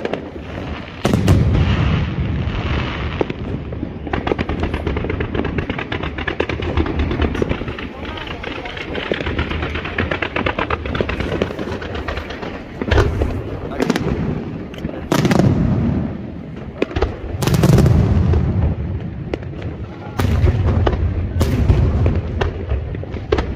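Fireworks crackle and fizz rapidly.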